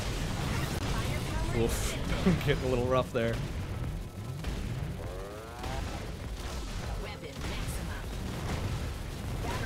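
Video game gunfire and explosions crackle rapidly.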